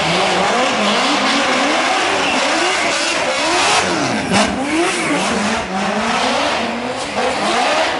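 Tyres screech on the road.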